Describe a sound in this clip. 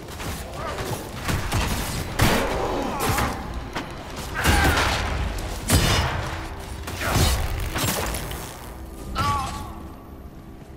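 Magic blasts crackle and boom in quick bursts.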